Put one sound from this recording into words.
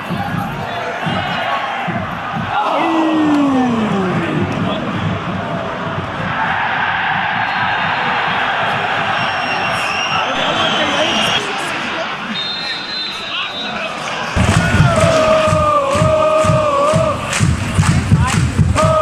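A large crowd of fans sings and chants loudly in an open stadium.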